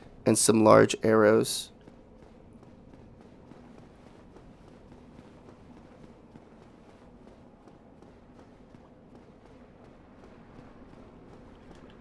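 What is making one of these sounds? Footsteps scuff along a stone floor.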